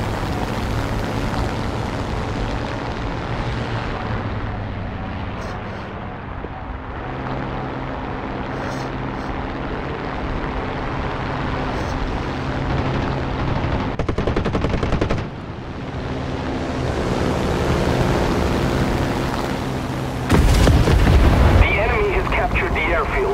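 A propeller plane's engine drones steadily, rising and falling in pitch.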